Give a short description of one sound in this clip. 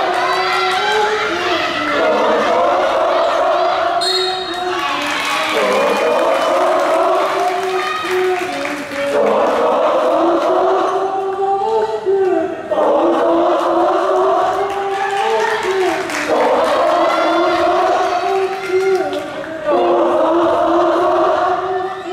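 A crowd of young spectators chants in rhythm in a large echoing hall.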